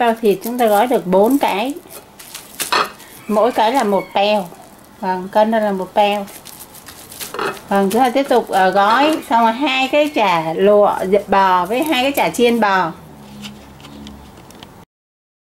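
Plastic wrap crinkles as it is pulled and wrapped tightly around a bundle.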